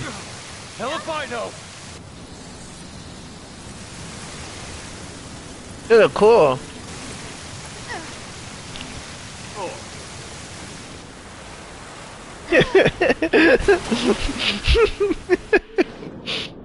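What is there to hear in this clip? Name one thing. Water rushes and churns loudly.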